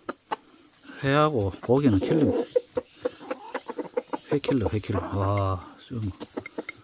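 A hen squawks and clucks loudly nearby.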